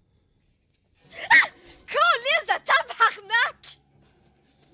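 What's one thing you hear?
A young woman shrieks loudly into a microphone.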